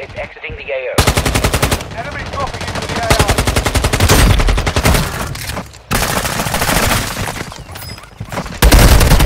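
A rifle fires rapid bursts of gunshots close by.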